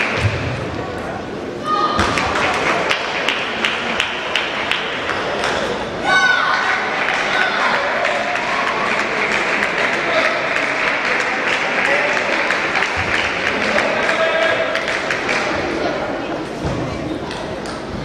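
Table tennis balls click rapidly on tables and paddles in a large echoing hall.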